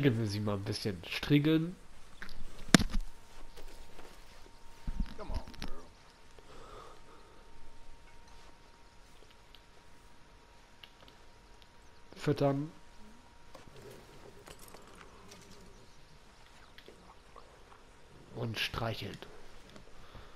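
A man speaks softly to a horse.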